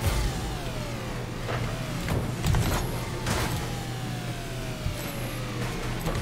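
A game car's engine hums steadily.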